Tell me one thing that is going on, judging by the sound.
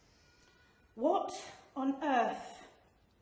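A middle-aged woman speaks clearly into a microphone.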